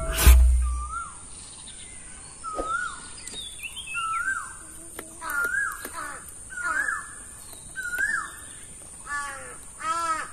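A peeler scrapes the skin off a papaya.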